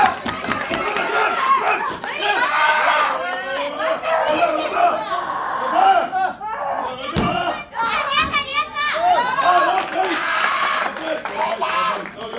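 A crowd cheers and shouts loudly in an echoing hall.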